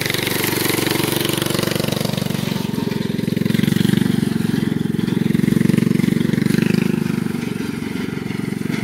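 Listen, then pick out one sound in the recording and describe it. A small lawn tractor engine runs with a steady, throbbing putter.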